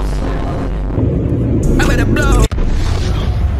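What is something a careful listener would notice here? A drink can pops and hisses open.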